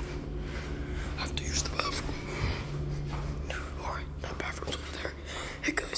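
A hand squeezes and rustles a soft plush toy close by.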